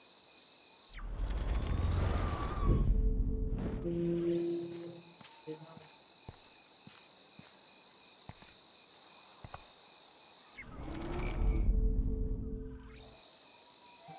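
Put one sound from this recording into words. A warped whooshing rewind effect swells and fades twice.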